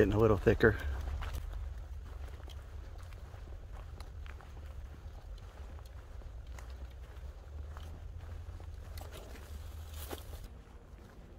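Footsteps crunch on a dirt trail through brush.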